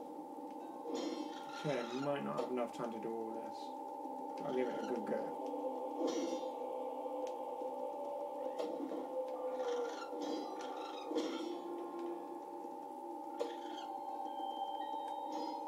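Electronic video game music plays steadily.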